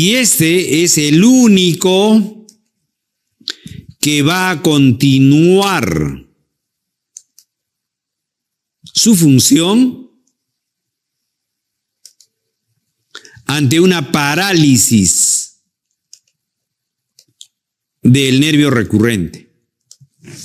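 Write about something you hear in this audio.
An older man speaks calmly into a close microphone, in short phrases with pauses.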